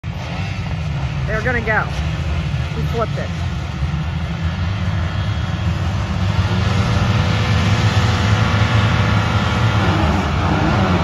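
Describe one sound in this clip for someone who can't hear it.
Many dirt bike engines idle and rev together in the distance.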